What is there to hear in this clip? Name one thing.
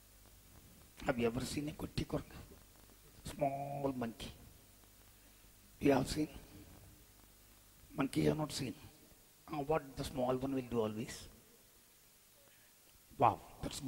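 A man sings phrases into a microphone, with short pauses between them.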